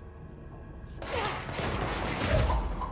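Gunshots ring out loudly and rapidly.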